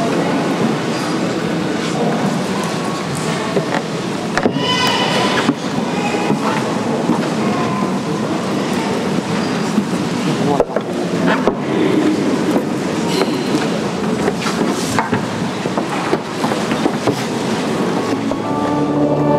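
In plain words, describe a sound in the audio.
A crowd of people murmurs in a large echoing hall.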